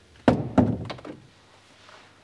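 A door bangs shut nearby.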